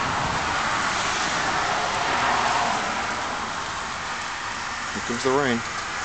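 A car drives past on a road outside.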